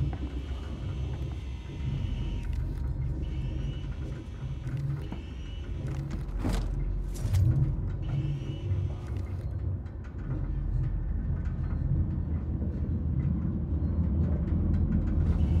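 A low mechanical hum drones steadily.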